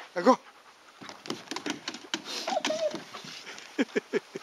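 A dog's claws scrabble and tap on a plastic slide.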